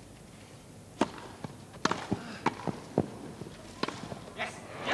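Tennis rackets strike a ball back and forth.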